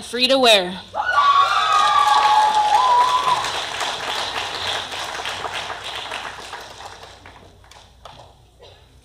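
A crowd applauds in a large hall, then the applause fades.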